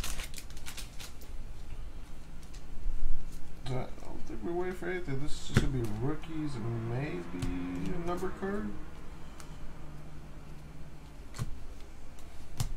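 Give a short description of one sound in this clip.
Trading cards shuffle and flick against each other.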